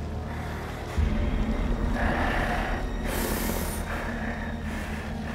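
A monstrous creature lets out a deep, rumbling roar.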